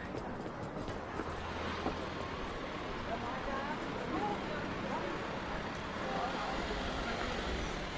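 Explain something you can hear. A van's engine runs as the van slowly drives past.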